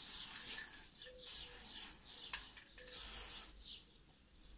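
An aerosol spray can hisses in short bursts.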